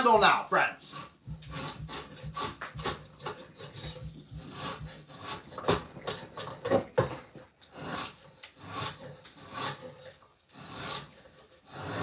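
A drawknife shaves wood in repeated rasping strokes.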